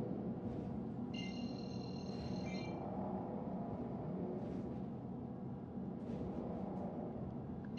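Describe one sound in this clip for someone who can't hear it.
A spacecraft engine hums with a low, steady rumble.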